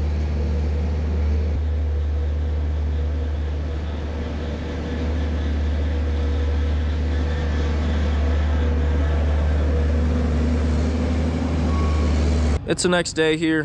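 A machine engine hums steadily close by.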